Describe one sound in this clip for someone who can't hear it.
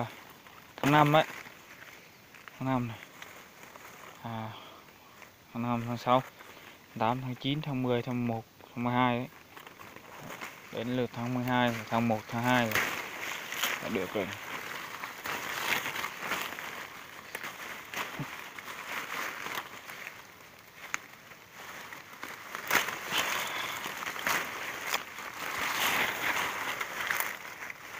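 Leaves rustle as a hand pushes through dense branches.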